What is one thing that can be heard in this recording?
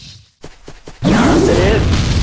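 A heavy blast bursts out with a roaring rush.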